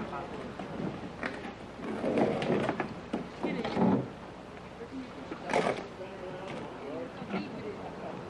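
A canoe knocks and scrapes as it is dragged along the bank.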